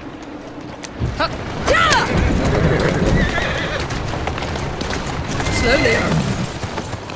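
A horse-drawn carriage rattles over cobblestones.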